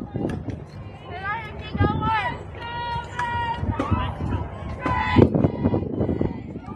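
Young women call and cheer from across the field.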